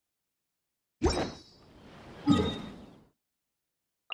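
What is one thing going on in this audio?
A whooshing game sound effect swells and fades.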